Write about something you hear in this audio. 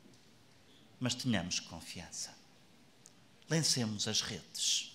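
A young man speaks calmly through a microphone in a large echoing hall.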